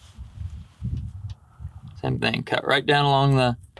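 A knife slices softly through a bird's skin and feathers.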